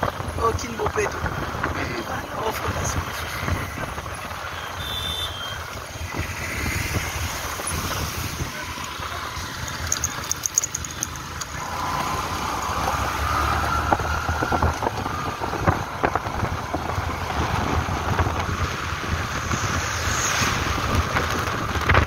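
A motorcycle engine hums steadily while riding along a street.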